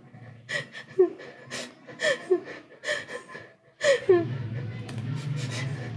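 A finger taps on a phone's touchscreen.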